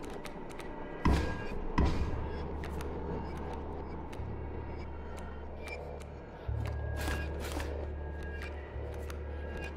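Playing cards thud down onto a wooden table.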